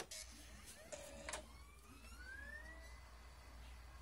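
A laptop disc drive whirs as it spins up.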